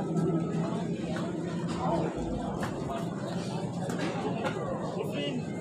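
A crowd of spectators chatters steadily outdoors.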